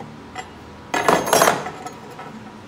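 A metal plate clatters onto a wooden table.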